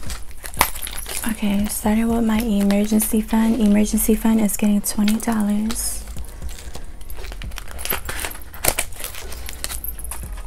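Plastic pouches crinkle and rustle as hands handle them.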